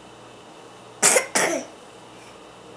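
A baby laughs loudly in short bursts close by.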